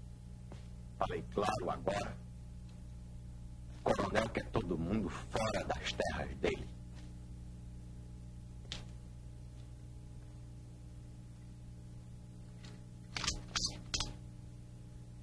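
A man speaks firmly and close by.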